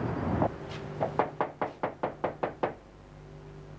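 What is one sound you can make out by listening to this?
Knuckles knock sharply on a glass door.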